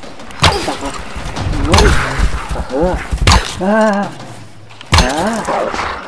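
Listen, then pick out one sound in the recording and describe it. A bow is loosed again and again with sharp snapping thwacks.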